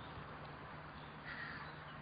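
Water splashes as a duck dives and surfaces.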